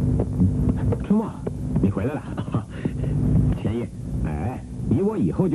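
A man speaks cheerfully, close by.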